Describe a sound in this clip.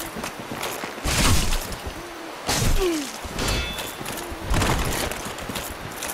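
A sword swings with heavy whooshes.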